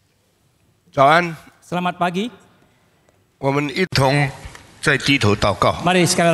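A middle-aged man speaks through a microphone.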